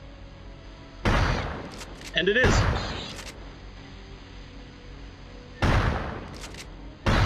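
A pump shotgun fires with a booming blast.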